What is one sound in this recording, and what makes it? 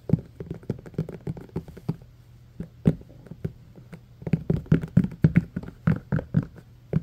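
Fingers tap and drum on hollow plastic cups with dull knocks.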